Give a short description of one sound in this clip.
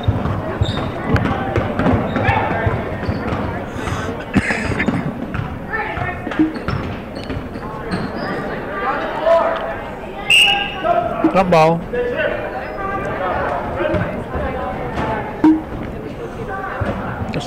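Spectators in a large echoing gym chatter and cheer.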